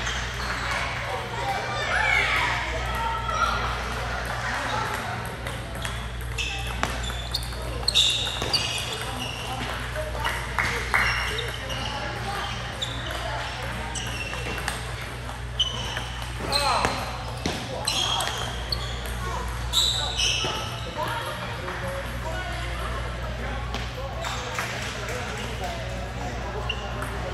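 Ping-pong balls click sharply off paddles and tables in a large echoing hall.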